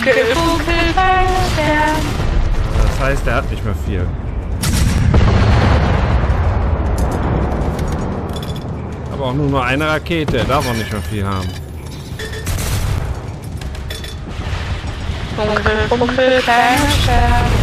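A rocket launcher fires with a sharp blast.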